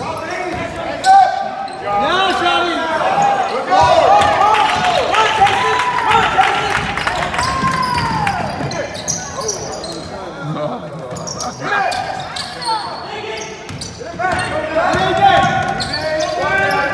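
Sneakers squeak sharply on a hardwood floor, echoing in a large hall.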